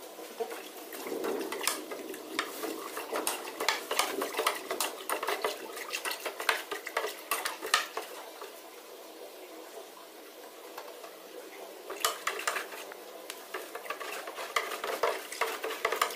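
A hand splashes and stirs water in a tub.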